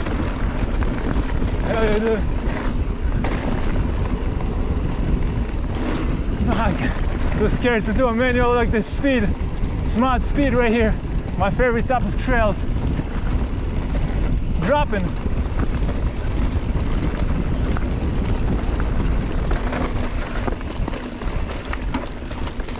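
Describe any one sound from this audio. Tyres roll and crunch over a dirt trail.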